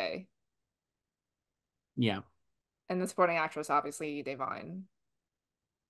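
A young woman talks calmly over an online call.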